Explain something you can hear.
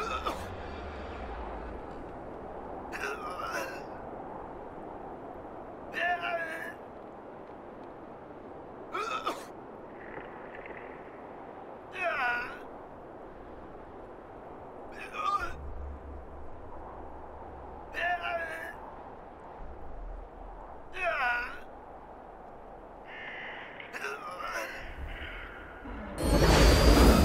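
Wind blows steadily through snowy trees.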